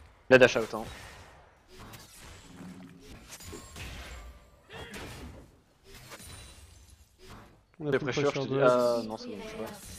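Spell blasts and clashing sounds ring out from a video game fight.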